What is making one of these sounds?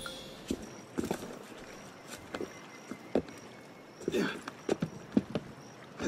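Hands and feet scrape while climbing a stone wall.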